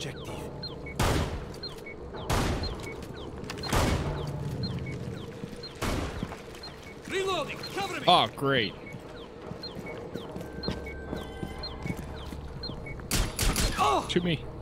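Gunshots ring out, one at a time.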